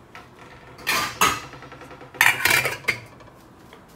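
A metal pot lid clanks.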